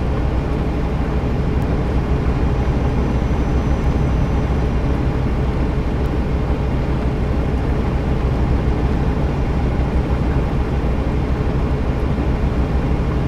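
A truck engine rumbles steadily at low pitch.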